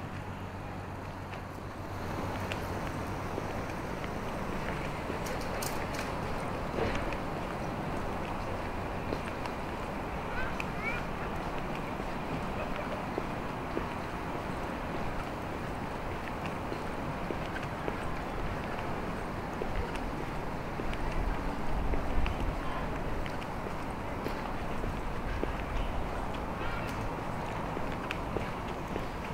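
Footsteps tread steadily on paving stones outdoors.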